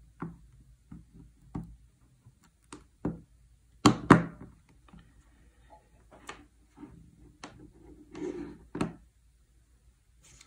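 Hands handle a small plastic device on a table with light knocks and clicks.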